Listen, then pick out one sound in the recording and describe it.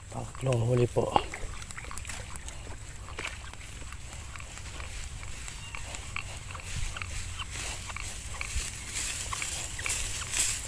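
Wind blows through tall grass outdoors.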